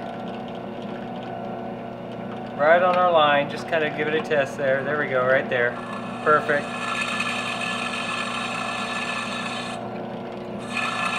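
A drill press motor whirs steadily.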